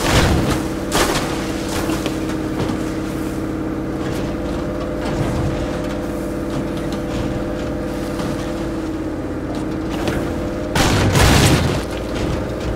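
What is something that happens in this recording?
A vehicle thumps and rattles over bumps.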